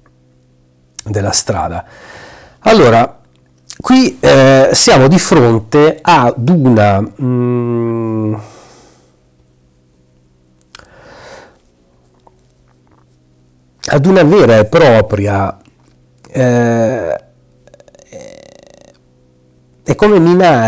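A man speaks expressively into a close microphone, with pauses.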